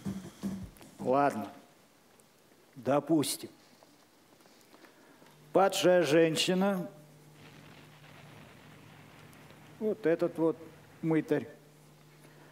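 A man speaks loudly, in short bursts, in an echoing hall.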